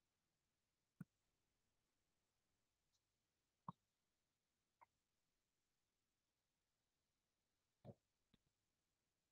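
Chalk taps sharply against a board now and then.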